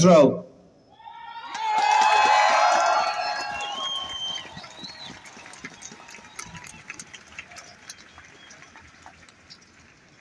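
A crowd cheers and whistles, then slowly fades.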